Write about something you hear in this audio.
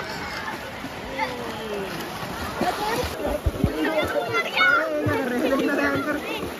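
Water splashes loudly as people thrash about.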